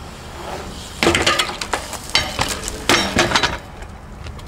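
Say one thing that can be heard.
A bicycle clatters and thuds on stone.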